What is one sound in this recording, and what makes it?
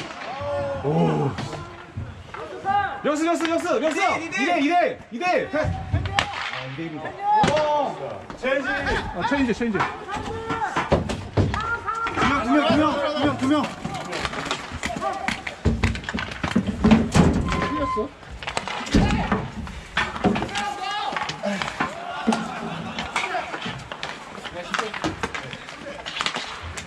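Hockey sticks clack on the rink's boards and surface.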